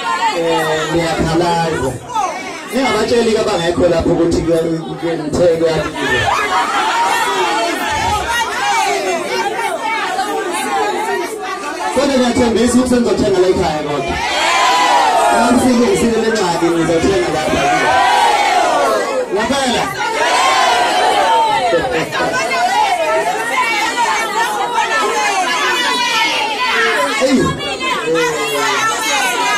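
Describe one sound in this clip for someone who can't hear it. A crowd of young women sings along loudly.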